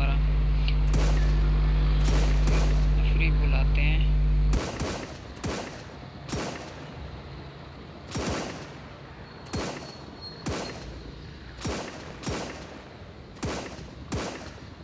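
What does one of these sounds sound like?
Rifle shots crack one after another.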